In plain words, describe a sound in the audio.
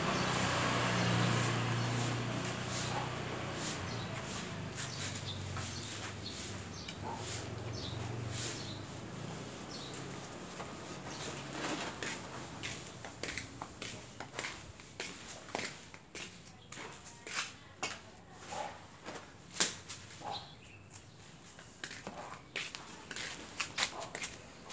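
Hands press and pat soil into a plastic pot.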